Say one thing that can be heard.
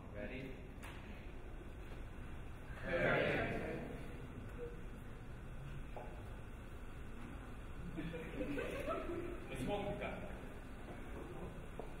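A man speaks to a group in a large room.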